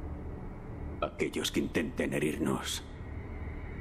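A man speaks slowly and menacingly, close to the microphone.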